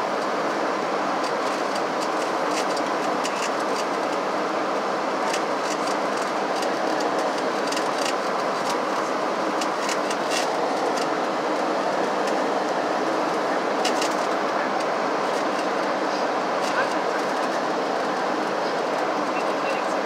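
Jet engines roar steadily inside an airliner cabin in flight.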